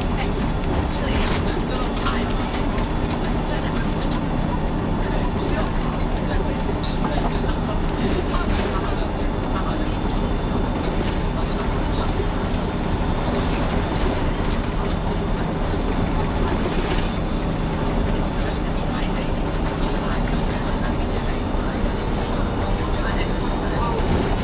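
A bus engine hums steadily, heard from inside.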